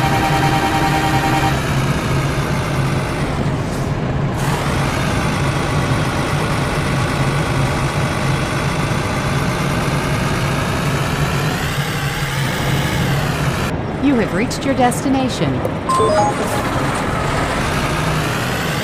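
A truck's diesel engine idles with a steady low rumble.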